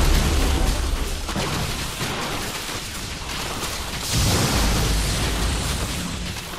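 Energy weapons zap and crackle in a game battle.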